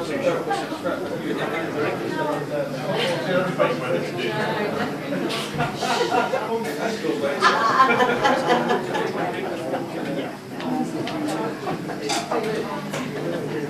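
An electric guitar plays loudly through an amplifier.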